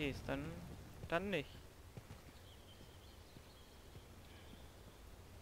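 Footsteps tread softly over grass and dirt.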